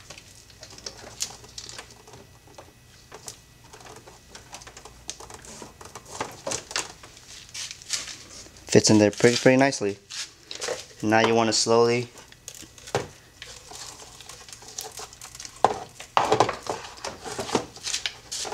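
Plastic parts knock and click as they are fitted into place by hand.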